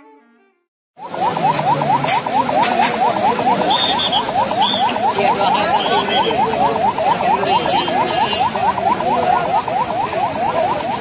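A police siren wails rapidly and steadily close by.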